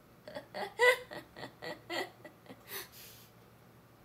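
A young woman giggles close by.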